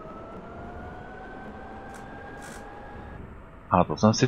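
An electric tram motor whines, its pitch slowly rising.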